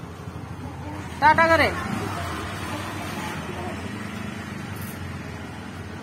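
An auto-rickshaw engine rattles past.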